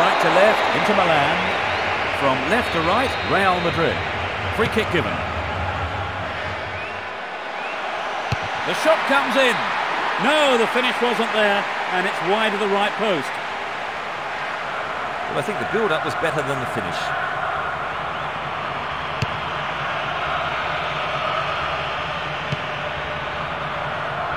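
A large stadium crowd cheers and murmurs steadily.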